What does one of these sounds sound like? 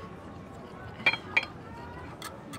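A knife and fork scrape and clink on a plate.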